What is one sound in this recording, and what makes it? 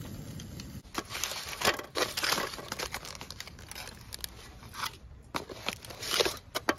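Aluminium foil crinkles and rustles as gloved hands unwrap it.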